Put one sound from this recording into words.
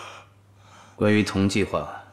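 A man speaks in a mocking, drawn-out tone.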